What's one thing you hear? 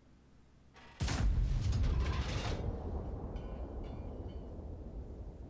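A tank cannon fires with a sudden loud boom that rumbles away.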